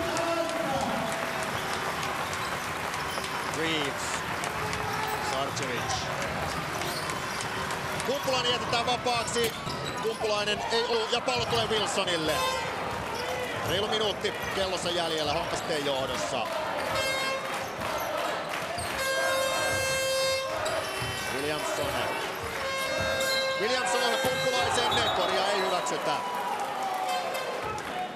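A large crowd cheers and chatters in an echoing hall.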